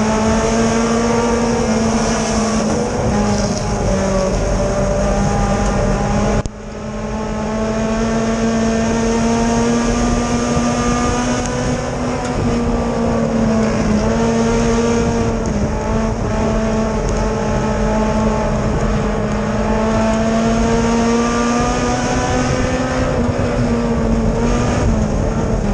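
A race car engine roars loudly up close, its pitch rising and falling with the throttle.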